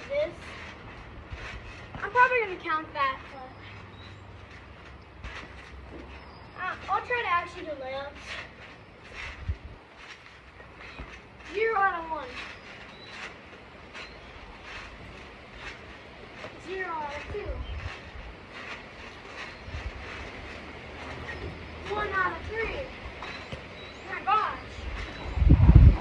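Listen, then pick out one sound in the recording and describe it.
A basketball thuds against a hoop's backboard.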